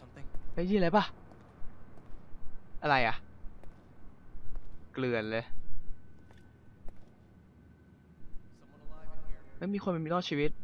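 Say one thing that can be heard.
A young man speaks in short, animated bursts close to a microphone.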